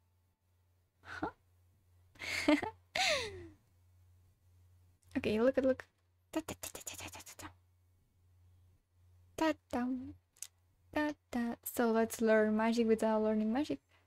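A young woman talks and exclaims with animation, close to a microphone.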